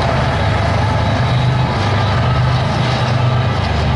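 Steel wheels clatter and squeal over the rails.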